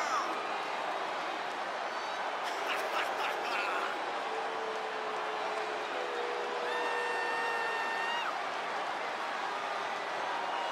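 A large arena crowd cheers and roars steadily.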